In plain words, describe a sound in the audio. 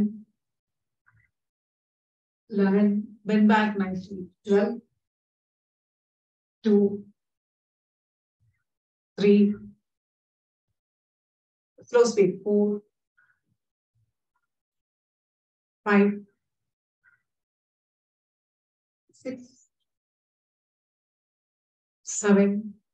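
A woman calmly gives short spoken instructions over an online call, with pauses between phrases.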